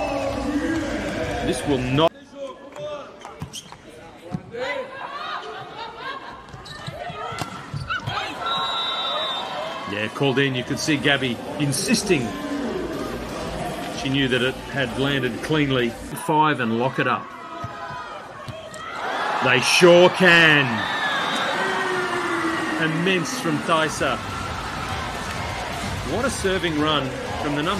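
A large crowd cheers and claps in an echoing arena.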